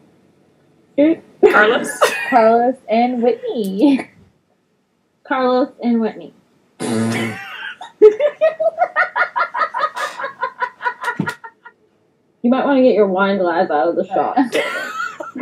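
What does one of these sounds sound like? Young women laugh over an online call.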